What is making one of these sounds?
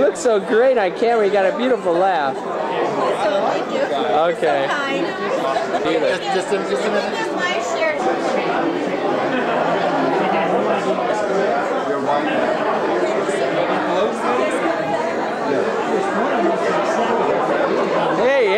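A crowd of people chatters loudly throughout.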